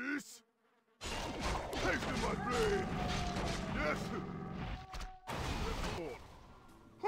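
Weapons clash and thud in a fight.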